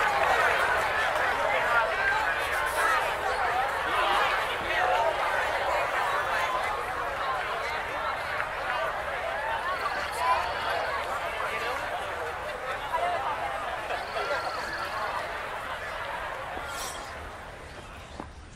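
A large crowd murmurs outdoors, then fades away.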